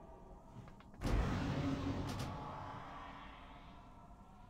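A magic spell bursts with a loud whoosh and slowly fades.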